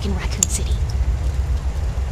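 A young woman speaks quietly and earnestly.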